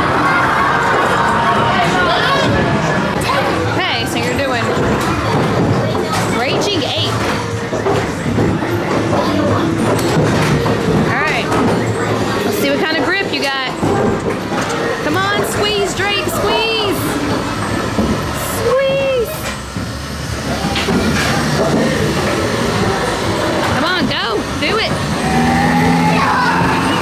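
Arcade machines chime, beep and play electronic music all around.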